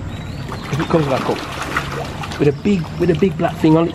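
Fish splash and thrash at the water's surface.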